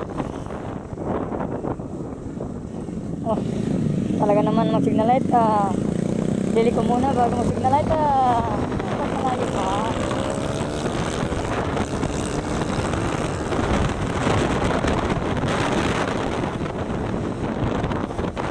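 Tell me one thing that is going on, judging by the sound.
A motorcycle engine hums steadily as the bike rides along.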